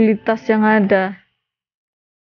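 A young woman speaks close into a microphone.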